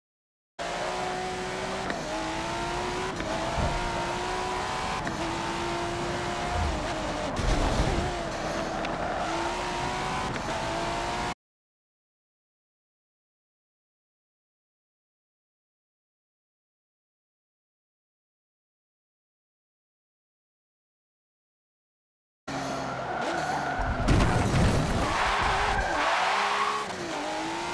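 A sports car engine roars and revs up and down through gear changes.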